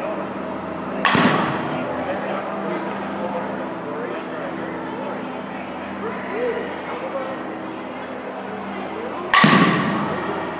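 A bat smacks a ball off a tee with a sharp crack.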